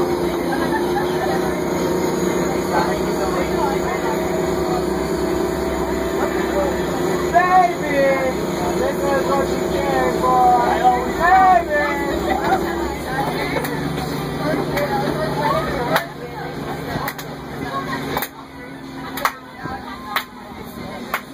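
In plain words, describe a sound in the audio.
A bus rattles and clatters over the road.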